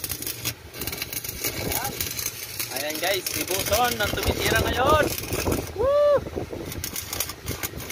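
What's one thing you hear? An electric welding arc crackles and sizzles steadily.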